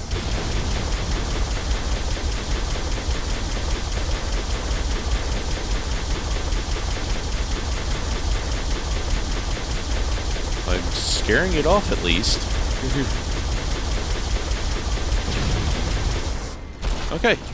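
Video game energy weapons fire in rapid bursts.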